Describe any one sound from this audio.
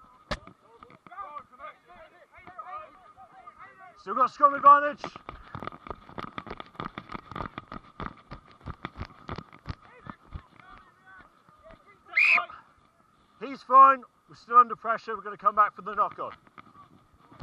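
Men shout loudly to each other outdoors.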